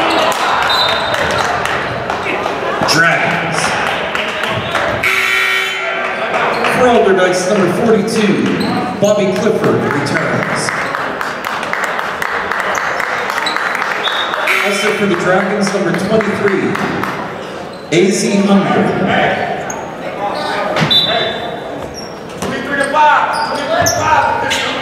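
A crowd murmurs and cheers throughout a large echoing gym.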